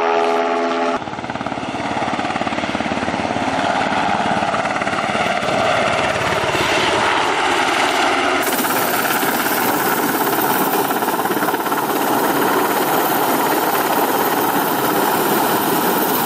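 A helicopter's rotor thumps loudly and steadily overhead.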